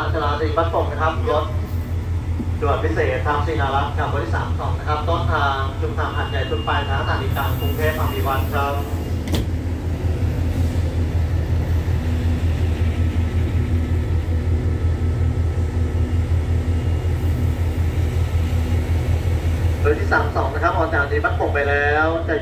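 A train's diesel engine idles with a steady, throbbing rumble.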